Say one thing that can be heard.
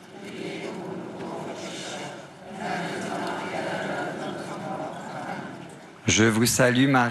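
A crowd sings together outdoors.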